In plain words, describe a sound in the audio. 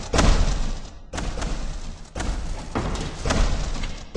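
A gun fires repeated shots.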